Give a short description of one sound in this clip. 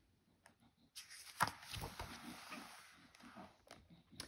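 A page of a book turns with a papery rustle.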